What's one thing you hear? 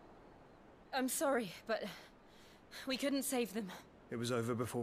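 A young woman speaks gently.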